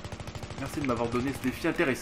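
A rifle fires short bursts of shots.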